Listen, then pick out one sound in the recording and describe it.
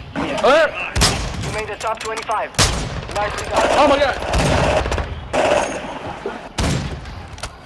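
A rifle fires loud, sharp shots that echo briefly.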